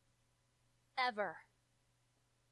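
A young woman says a short word firmly.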